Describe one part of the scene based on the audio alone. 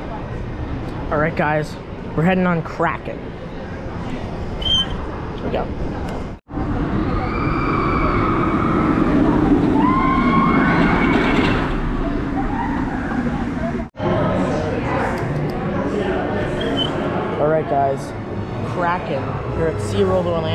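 A teenage boy talks close by.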